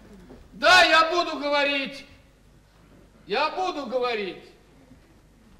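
A man speaks loudly and expressively.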